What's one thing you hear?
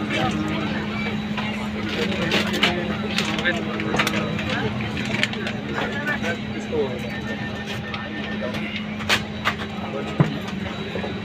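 Aircraft engines hum steadily in a cabin.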